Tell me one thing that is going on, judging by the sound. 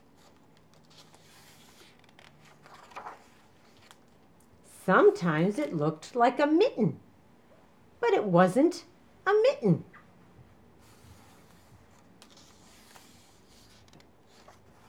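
A paper page rustles as it is turned.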